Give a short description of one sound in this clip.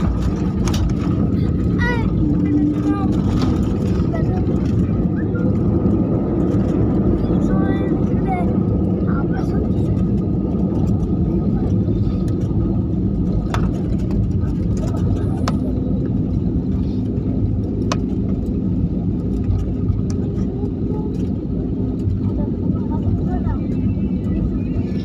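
Jet engines of an airliner rumble, heard from inside the cabin as the plane taxis.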